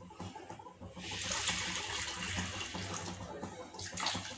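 Water pours and splashes into a metal pot.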